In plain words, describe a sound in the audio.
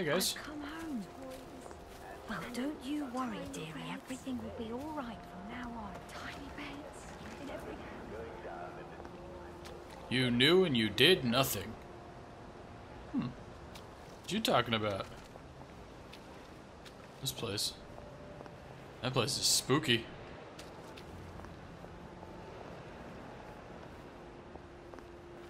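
Footsteps tread softly along a path.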